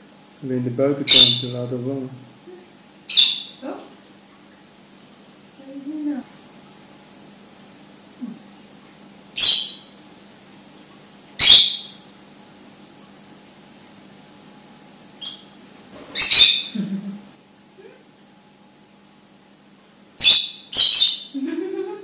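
Lovebirds give shrill chirps.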